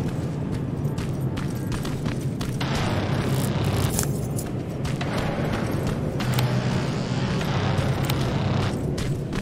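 Footsteps crunch over gravel and rubble.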